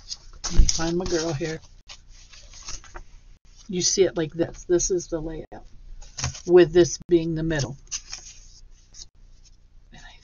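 Stiff paper cards rustle and slide as a hand shuffles them.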